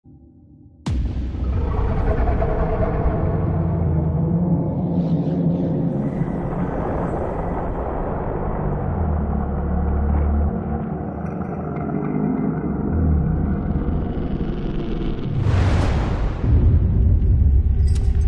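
A deep rumbling hum drones steadily.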